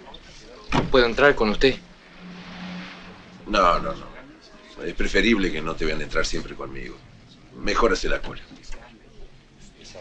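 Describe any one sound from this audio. Another man answers calmly nearby.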